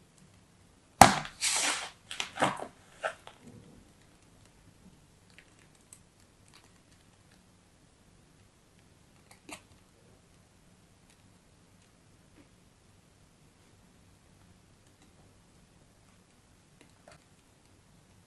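Kinetic sand crumbles and rustles softly under fingers.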